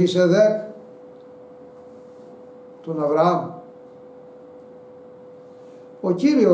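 An elderly man speaks slowly and emphatically, close to a microphone, with long pauses.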